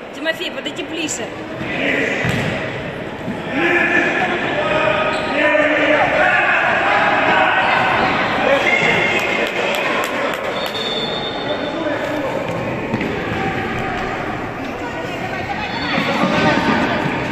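Children shout and cheer in a large echoing hall.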